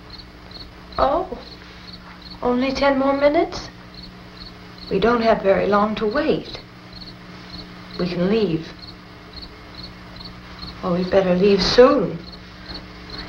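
A young woman speaks quietly and hesitantly, close by.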